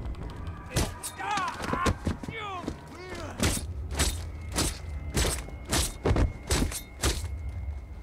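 A man grunts and cries out in pain.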